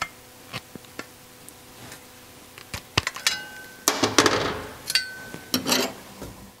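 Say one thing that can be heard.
Tin snips cut through thin sheet metal with sharp snaps.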